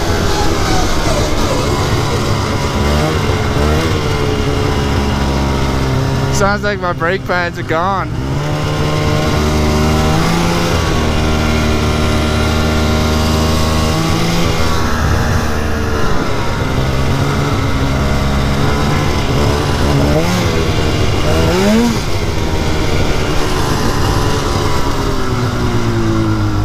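A snowmobile engine drones loudly up close, rising and falling in pitch as it speeds up and slows.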